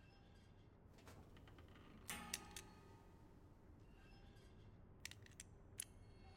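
Metal dials of a combination lock click as they turn.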